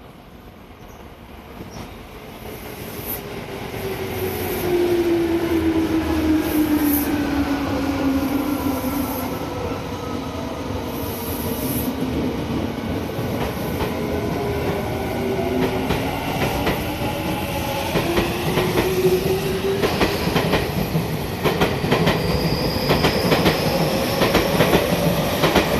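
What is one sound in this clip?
An electric train's motor whines, gliding down and up in pitch as it pulls away.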